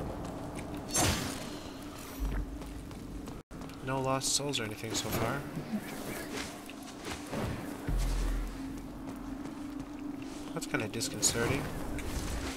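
Swooshing energy whooshes sweep past.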